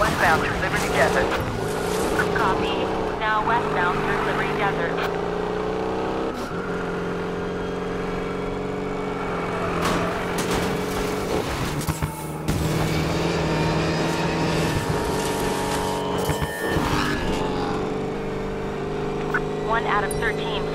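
A truck engine roars steadily at high speed.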